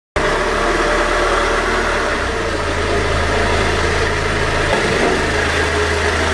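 A van engine hums low and steady as the van creeps slowly forward.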